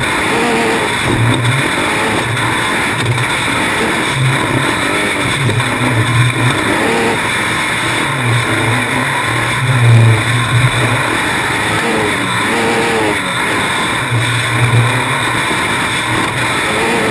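A racing buggy's engine roars and revs hard close by.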